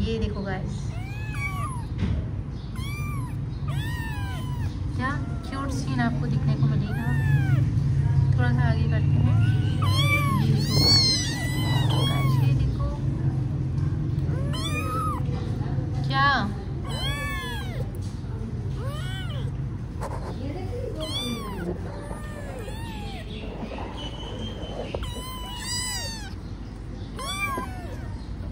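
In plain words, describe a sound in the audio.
Small kittens meow repeatedly in high, squeaky cries close by.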